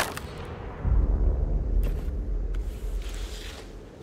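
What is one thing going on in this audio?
Hands scrape against rock while climbing.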